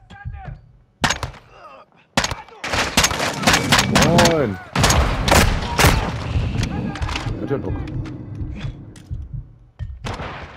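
Gunshots fire in rapid bursts close by.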